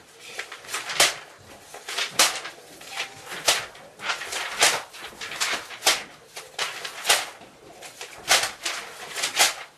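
Papers slap down onto a table.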